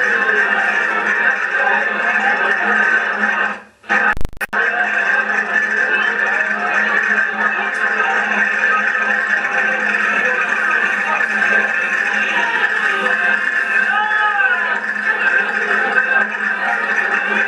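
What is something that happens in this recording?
A crowd chatters and calls out.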